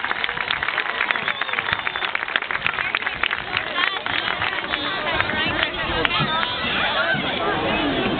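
A marching band plays brass instruments outdoors.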